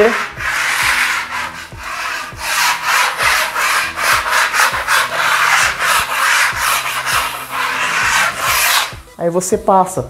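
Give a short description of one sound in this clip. Sandpaper scrapes briskly back and forth against a wall.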